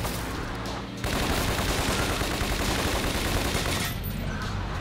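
A submachine gun fires in rapid bursts.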